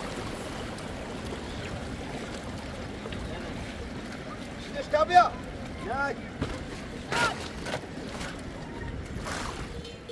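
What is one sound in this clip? A shallow river flows and burbles over stones.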